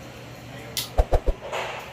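A light switch clicks several times.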